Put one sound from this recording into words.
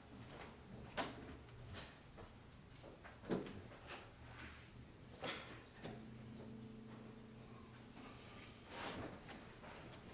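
Metal vessels clink and knock as a man handles them.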